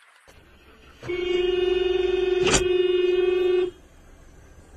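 A car horn blares in one long, steady blast.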